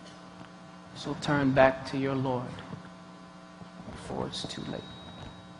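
A man speaks slowly and earnestly through a microphone.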